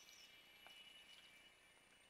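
Water pours into a pot.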